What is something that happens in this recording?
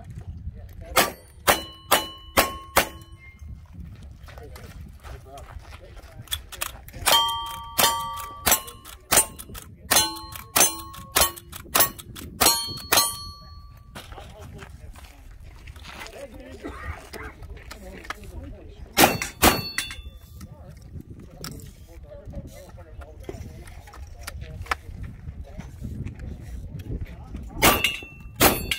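Rapid gunshots crack loudly outdoors.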